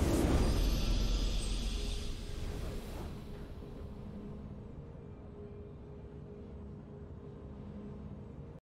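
A triumphant chime rings out.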